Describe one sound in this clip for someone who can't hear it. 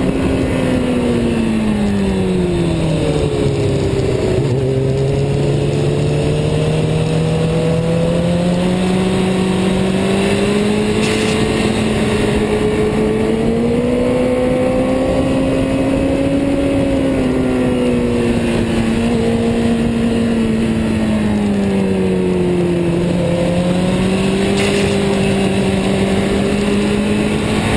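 A motorcycle engine roars close by, its pitch rising and falling as it speeds up and slows through turns.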